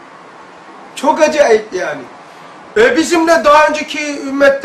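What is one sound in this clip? An elderly man speaks calmly and with emphasis into a nearby microphone.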